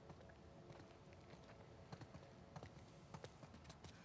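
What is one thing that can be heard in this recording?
Footsteps shuffle softly across a gritty floor.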